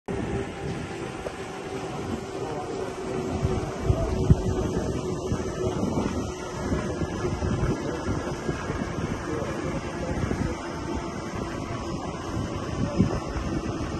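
Wind blows across open ground outdoors.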